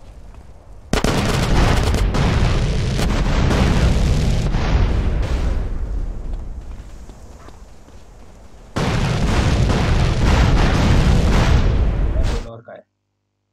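Rockets explode with loud booms and long rumbling.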